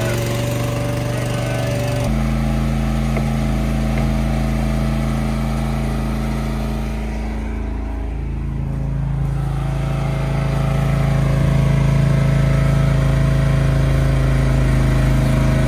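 A small engine hums steadily close by.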